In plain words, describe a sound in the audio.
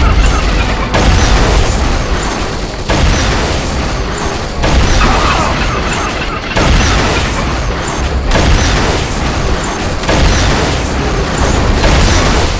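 Explosions boom and crack.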